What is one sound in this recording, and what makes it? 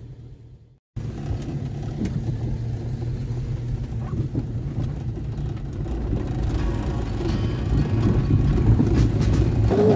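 A car engine rumbles low.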